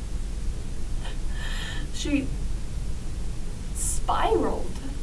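A young woman sniffles and sobs softly.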